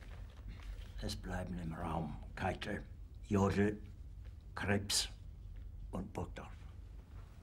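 An elderly man speaks quietly and tensely, close by.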